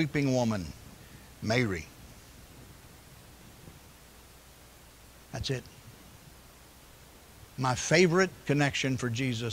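An elderly man speaks calmly into a microphone in a large room, with long pauses.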